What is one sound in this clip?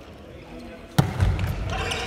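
A volleyball is struck hard with a loud smack in a large echoing hall.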